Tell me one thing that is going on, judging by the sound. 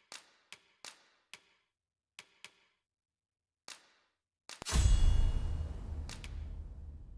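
Short, crisp menu clicks tick as options are selected.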